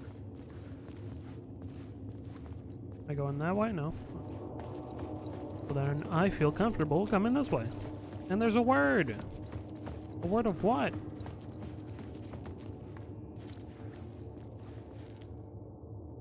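Footsteps walk slowly across a hard tiled floor.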